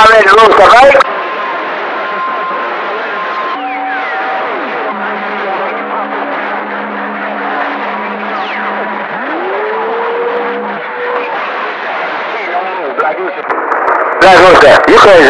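A shortwave radio hisses with static.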